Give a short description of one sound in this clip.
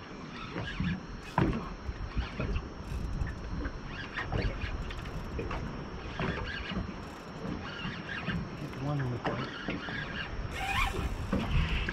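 A fishing reel clicks and whirs as a line is wound in.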